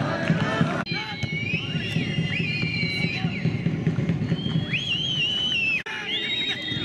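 A referee's whistle blows in long blasts.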